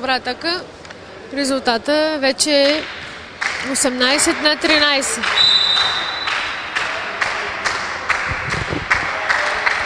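A volleyball bounces on a hard indoor floor.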